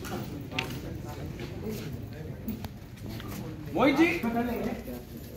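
Several people talk quietly nearby.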